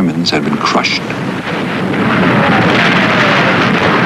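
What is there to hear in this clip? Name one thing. Rockets launch with a rushing roar.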